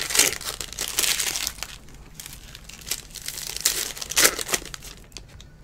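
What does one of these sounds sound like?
Trading cards rustle and slide against each other as a stack is handled.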